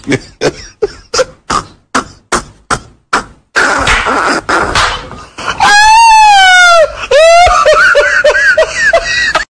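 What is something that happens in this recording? A man laughs loudly and hysterically, breaking into high-pitched shrieks.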